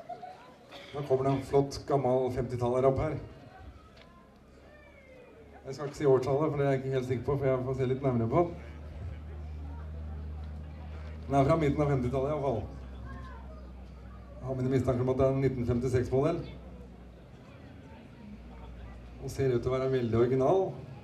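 A man sings with vibrato through a microphone and loudspeakers outdoors.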